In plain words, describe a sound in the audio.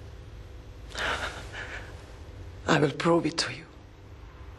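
A young man sobs and cries out in distress.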